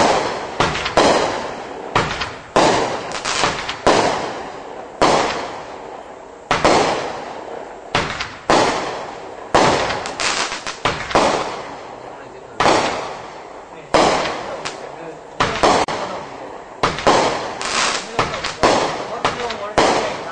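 Fireworks burst with loud booms that echo away.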